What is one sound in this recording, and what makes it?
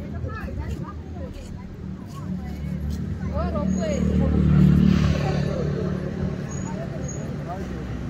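People chatter and call out nearby.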